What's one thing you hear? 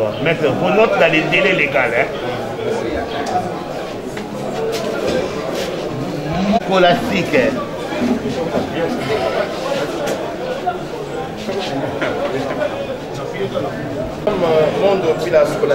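Several men and women talk at once in a crowded room.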